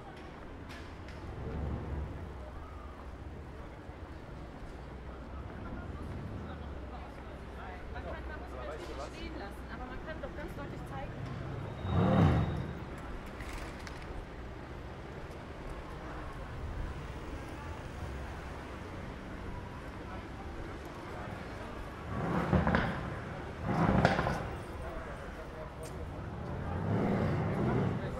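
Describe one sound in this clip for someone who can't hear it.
Outdoor street hubbub with distant traffic hums steadily.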